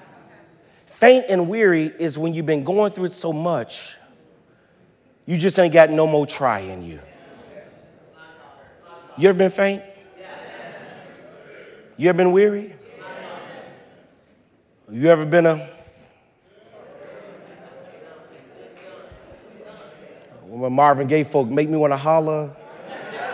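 A man preaches loudly and with passion through a microphone in a large echoing hall.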